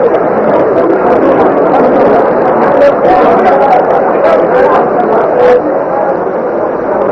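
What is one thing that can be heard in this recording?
A large crowd cheers and chatters loudly outdoors.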